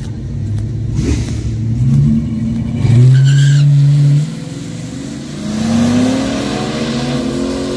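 A car engine revs loudly and roars away.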